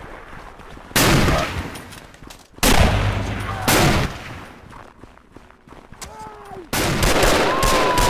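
Loud rifle shots boom and echo.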